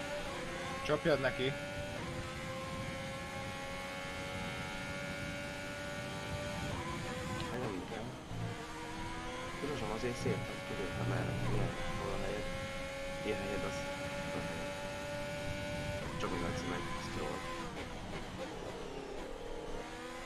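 A racing car engine whines loudly, rising and falling as it shifts gears.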